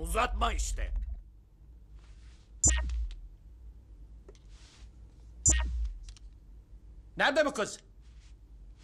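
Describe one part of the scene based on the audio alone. A man speaks in a low voice.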